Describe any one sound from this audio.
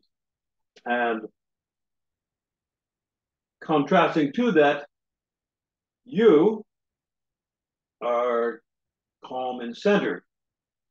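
An older man speaks expressively in short bursts through a microphone on an online call.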